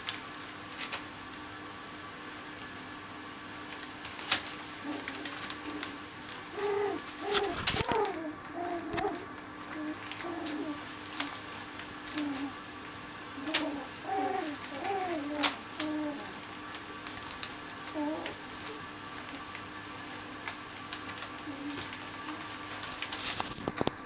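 Newspaper rustles and crinkles under small paws.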